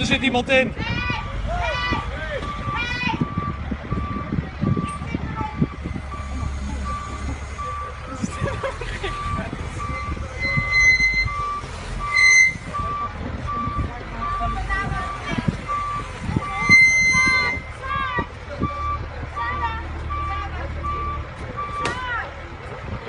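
A loader's reversing alarm beeps steadily.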